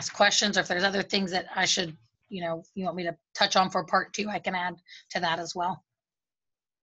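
A young woman speaks calmly, close up, heard through an online call.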